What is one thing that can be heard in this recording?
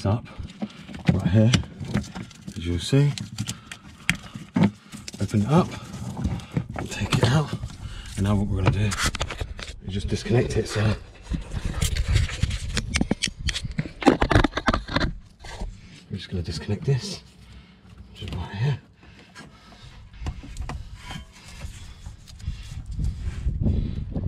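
A plastic connector clicks and rattles as hands work on it.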